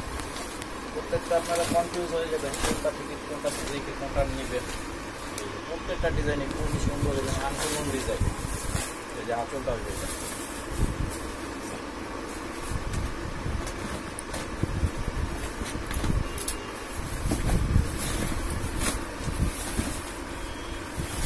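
Fabric rustles as it is unfolded and handled.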